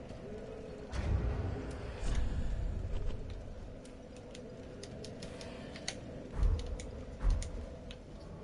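Short sharp clicks sound as menu options are selected.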